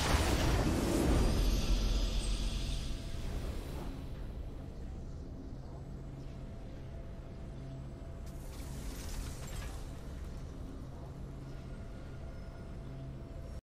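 A game victory fanfare swells and rings out.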